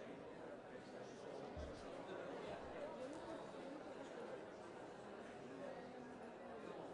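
A large audience murmurs and chatters quietly in an echoing hall.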